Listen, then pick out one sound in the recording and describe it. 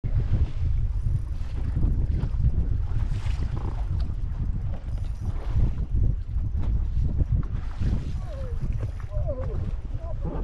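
A boat's hull slaps and thumps on choppy waves.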